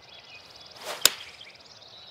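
A golf club strikes a ball with a sharp crack.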